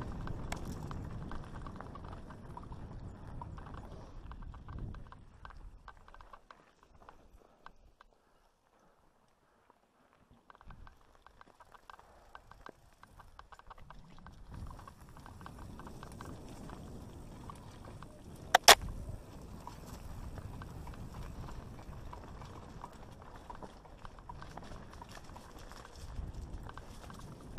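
Mountain bike tyres roll and rattle over dirt and loose rocks.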